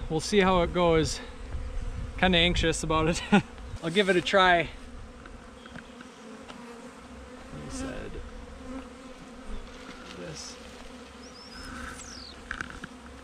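Bees buzz around.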